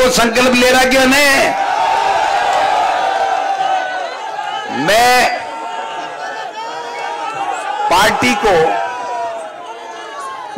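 A man shouts with animation through a loudspeaker.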